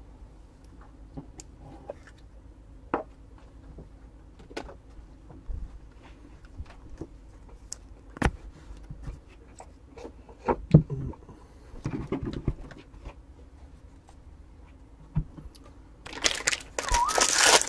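Cards tap and click on a table.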